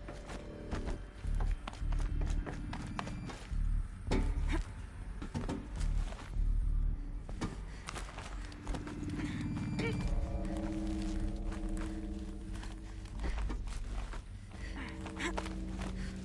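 Hands and boots clank on metal handholds during a climb.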